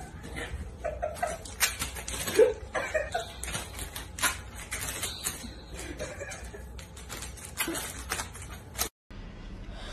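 Paper crinkles and scrapes as a cat steps across a hard floor.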